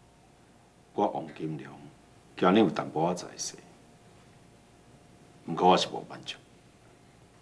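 A middle-aged man speaks slowly and sternly, close by.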